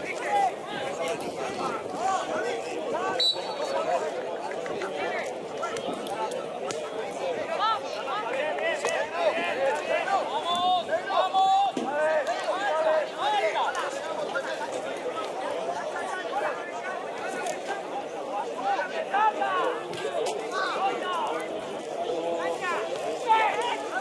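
Young men shout and call to each other across an open outdoor field.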